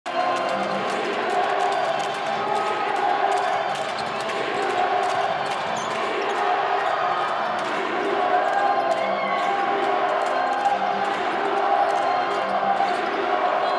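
A young woman claps her hands overhead.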